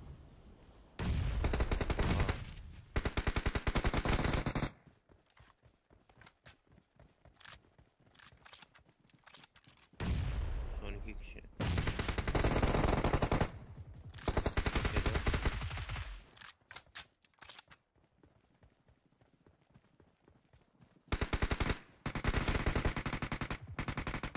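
Rapid gunfire bursts loudly in quick volleys.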